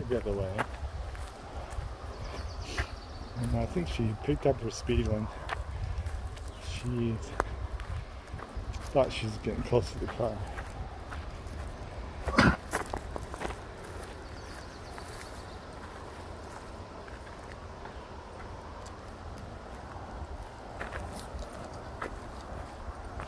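Footsteps crunch on a dirt trail through dry grass.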